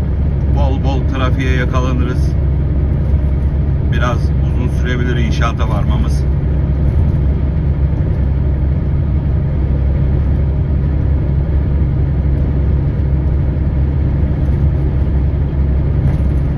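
A vehicle engine hums steadily from inside a cab.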